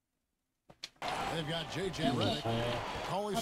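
A crowd murmurs and cheers.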